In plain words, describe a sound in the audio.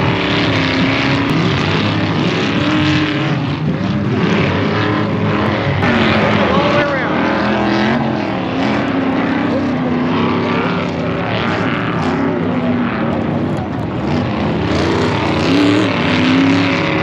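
Several off-road engines roar and rev as vehicles race over dirt.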